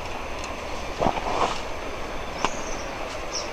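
Footsteps crunch on dry leaf litter.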